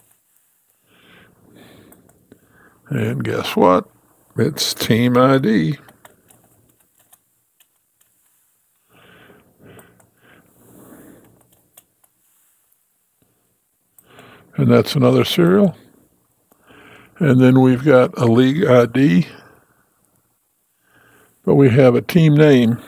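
An elderly man explains calmly, close to a microphone, in bursts with pauses.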